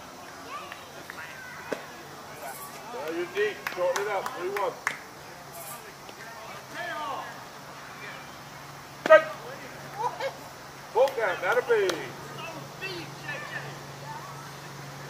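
Men call out and chat at a distance outdoors.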